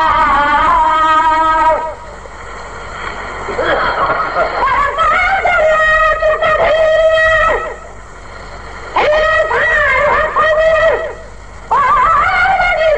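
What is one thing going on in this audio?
An elderly man chants in a melodic voice through a microphone, pausing between phrases.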